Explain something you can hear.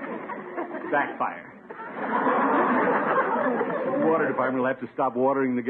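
A man speaks with animation, heard through an old, thin-sounding radio recording.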